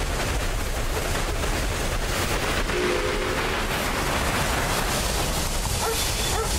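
A steam locomotive chugs steadily along a track.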